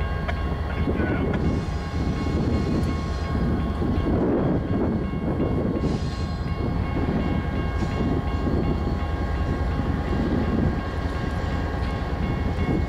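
A diesel train engine rumbles steadily in the distance as the train slowly approaches.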